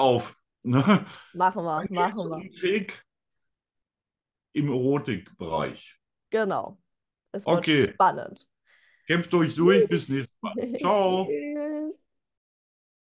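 A young woman talks and laughs over an online call.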